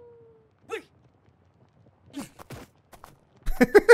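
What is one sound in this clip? A rider tumbles to the ground with a thud.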